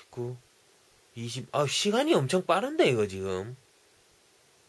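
A young man speaks briefly and calmly, close up.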